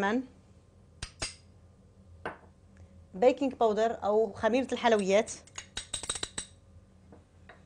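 A spoon taps against a glass bowl.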